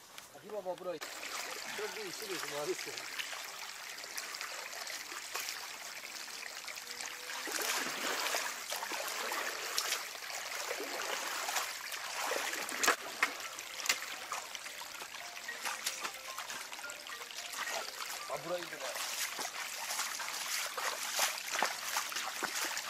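Hands splash and squelch in wet mud.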